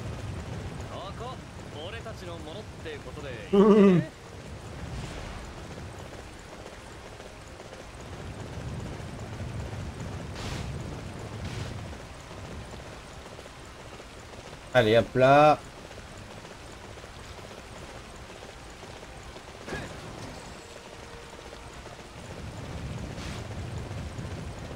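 A horse's hooves thud steadily on soft ground.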